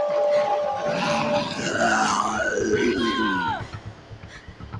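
A zombie snarls and growls close by.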